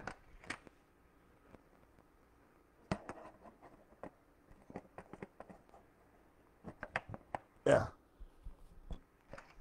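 Plastic parts click and knock close by as something is handled.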